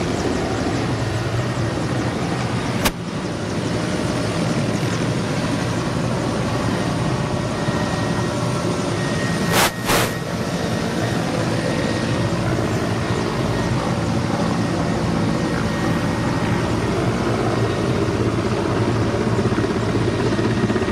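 A helicopter's engine whines.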